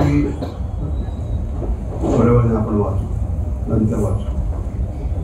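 A middle-aged man speaks slowly into a microphone, heard over loudspeakers.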